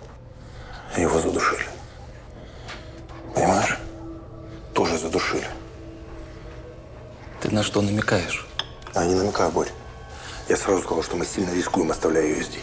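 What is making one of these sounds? A man speaks quietly and tensely, close by.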